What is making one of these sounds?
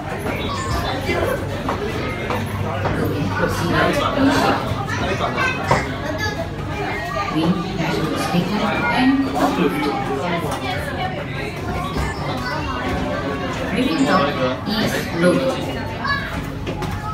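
A fairground ride's motor hums steadily.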